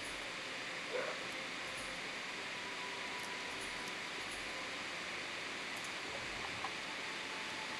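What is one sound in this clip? A soft menu click sounds now and then.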